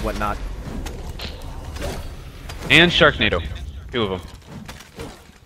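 Swords swish and clash in a fight.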